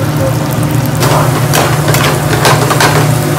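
A metal ladle clinks and scrapes against a pan.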